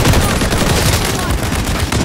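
An explosion bursts with a roaring blast.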